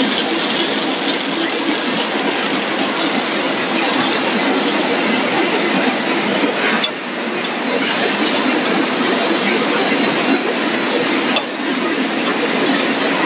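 Food processing machinery runs with a steady loud whirring and rattling.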